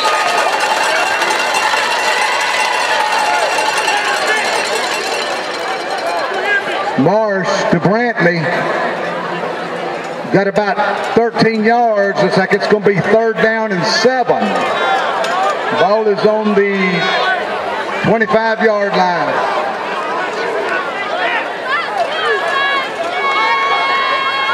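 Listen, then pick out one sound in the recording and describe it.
A crowd cheers and chatters outdoors in a large stadium.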